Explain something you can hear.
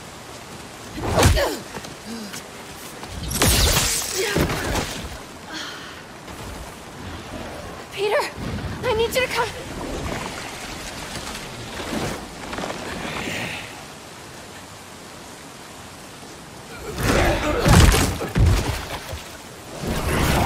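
Fighters scuffle and strike blows with heavy thuds.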